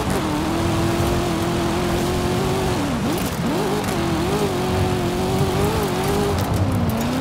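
A car engine roars at high revs, dropping briefly in pitch as it shifts gears.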